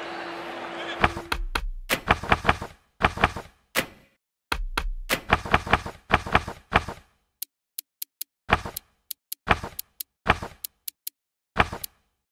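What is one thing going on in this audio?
Short menu clicks tick in quick bursts.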